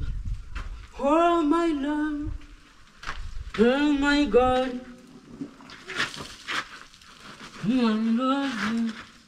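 A man sings nearby in short phrases.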